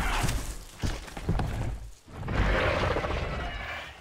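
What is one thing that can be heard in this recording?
A large beast roars loudly and deeply.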